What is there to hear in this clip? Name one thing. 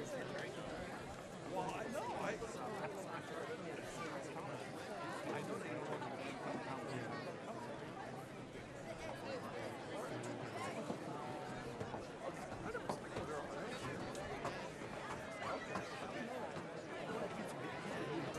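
Young men call out and talk nearby.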